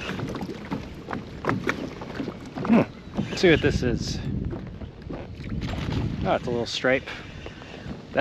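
Small waves lap against a kayak hull.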